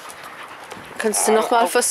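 A dog whines and yelps close by.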